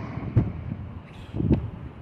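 An electric scooter rolls past on the street.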